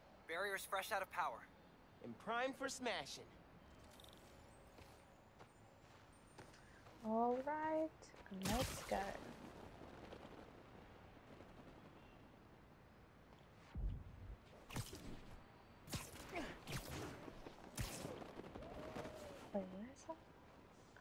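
A young woman talks and exclaims with animation into a close microphone.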